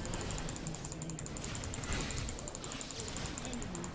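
Magic spells whoosh and crackle during a fight.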